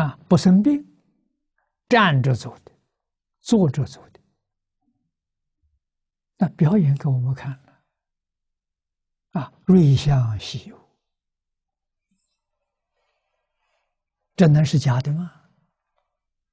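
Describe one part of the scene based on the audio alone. An elderly man speaks calmly, close to a microphone, in short phrases with long pauses.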